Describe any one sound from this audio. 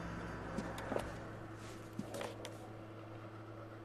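Paper rustles as a folder is handed over.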